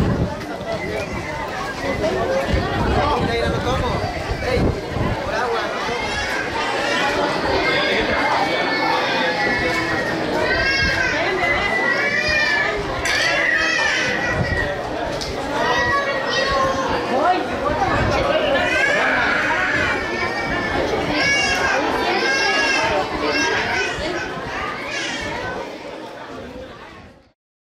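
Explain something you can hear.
A large crowd of men, women and children chatters outdoors.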